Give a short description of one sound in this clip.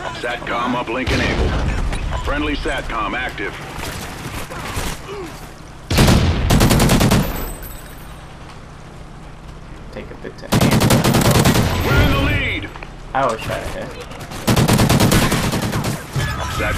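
Gunfire rattles in loud, rapid bursts.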